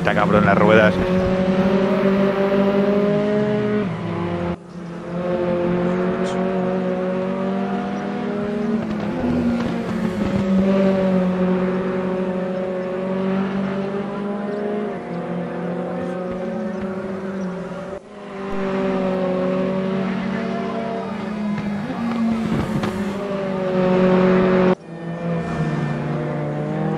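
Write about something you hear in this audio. A race car engine roars loudly, rising in pitch and dropping sharply with each gear change.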